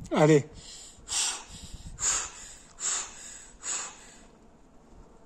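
A young man breathes out hard in short, effortful grunts.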